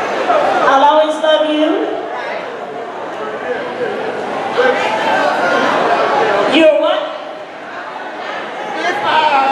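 A woman sings into a microphone over loudspeakers in a large hall.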